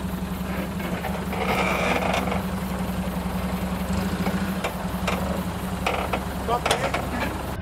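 Tyres crunch and scrape over rocks.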